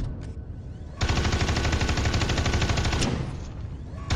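A rotary gun fires a rapid stream of shots.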